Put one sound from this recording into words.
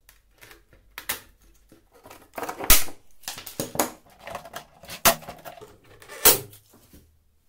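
A hand rivet gun snaps rivets tight with sharp cracks.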